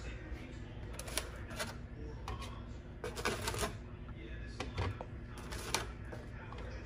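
Food pieces rustle and tap against a foam container.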